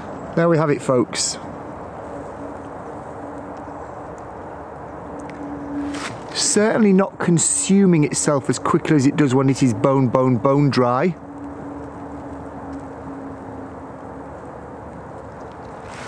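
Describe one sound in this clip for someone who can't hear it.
Dry grass crackles as it burns in a small flame.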